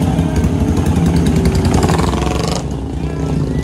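A motorcycle engine revs loudly as it pulls away.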